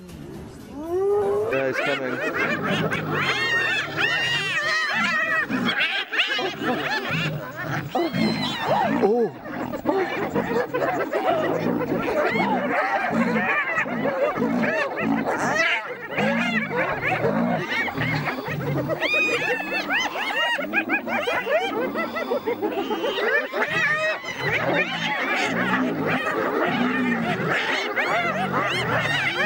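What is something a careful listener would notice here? Hyenas whoop, cackle and giggle loudly.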